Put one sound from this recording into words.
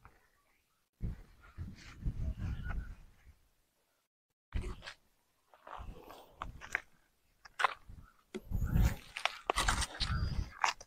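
Dry ground crunches underfoot as a man steps and crouches.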